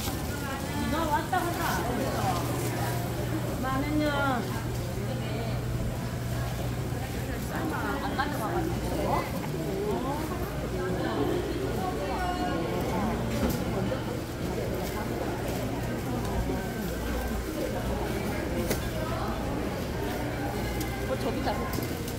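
Women talk close by with animation.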